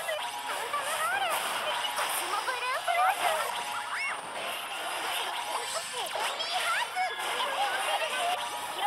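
Game battle effects whoosh and burst.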